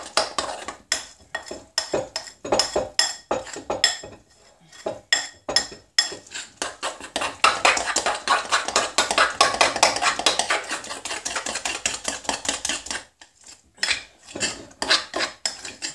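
Fingers squish through a soft, doughy mixture in a bowl.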